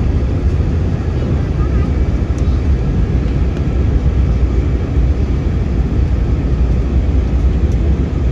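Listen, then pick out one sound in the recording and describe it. A plane's engines roar steadily in flight.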